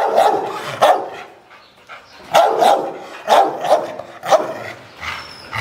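A dog barks loudly.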